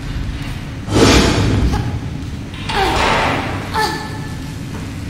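A body lands with a heavy thud.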